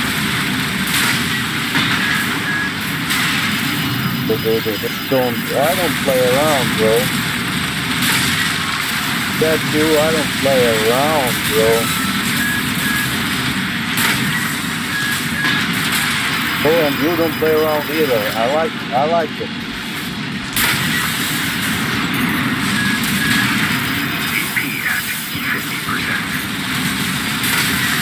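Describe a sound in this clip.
Laser blasts and explosions boom and crackle again and again.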